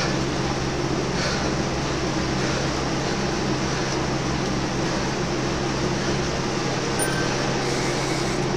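A man breathes heavily and steadily close by.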